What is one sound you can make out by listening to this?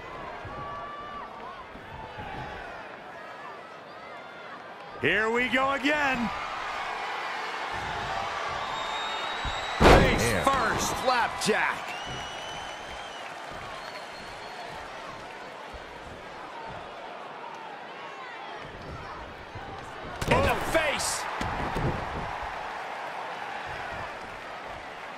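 A large arena crowd cheers and roars.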